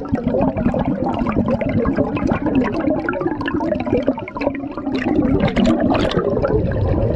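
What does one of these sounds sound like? Air bubbles gurgle and burble underwater.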